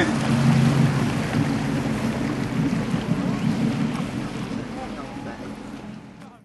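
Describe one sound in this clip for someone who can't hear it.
A boat engine drones steadily and slowly fades.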